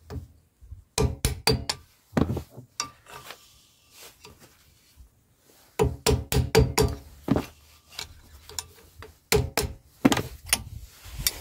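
A screwdriver taps and scrapes against a metal cap in sharp clicks.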